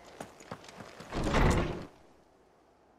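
A heavy wooden door creaks and bangs open.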